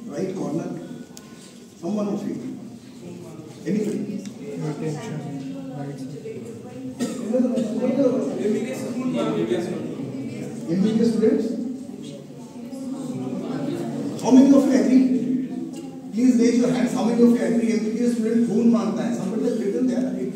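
An elderly man speaks into a microphone over loudspeakers, addressing an audience in a large echoing hall.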